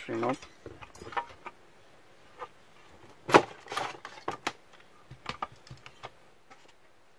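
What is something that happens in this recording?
Hard plastic parts click and knock as they are handled up close.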